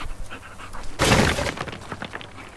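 A large boat crashes into a ship's hull with a loud crunch.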